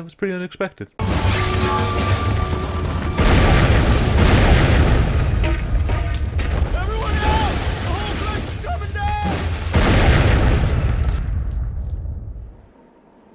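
A loud explosion booms and rumbles on.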